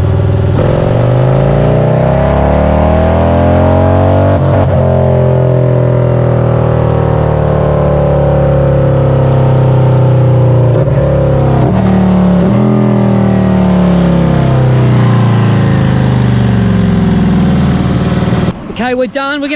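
A motorcycle engine roars loudly, revving up and down.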